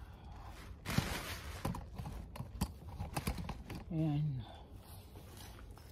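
Hands scrape and rustle through loose soil.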